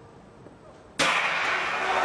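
A starting pistol fires once.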